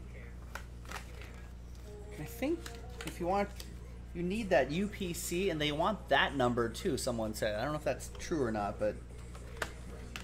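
Cardboard packaging rustles and tears as a box is opened.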